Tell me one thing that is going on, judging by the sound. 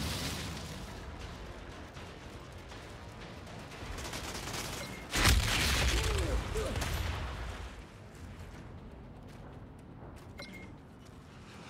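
Footsteps thud on the ground as someone runs.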